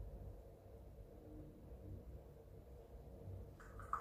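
Coffee pours into a cup.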